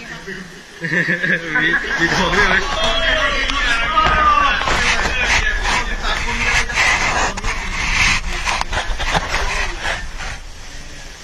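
Boys chatter and laugh excitedly nearby.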